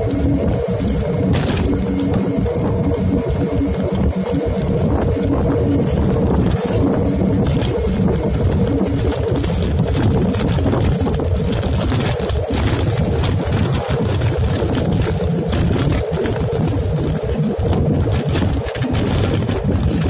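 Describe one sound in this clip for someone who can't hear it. Wind rushes loudly over the microphone.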